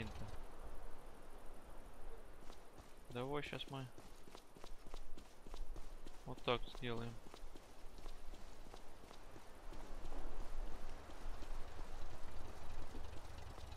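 Boots walk steadily on cobblestones.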